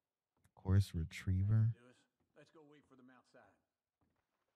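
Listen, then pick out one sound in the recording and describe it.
A young man talks animatedly, close to a microphone.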